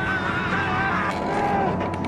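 A man groans and sobs in distress close by.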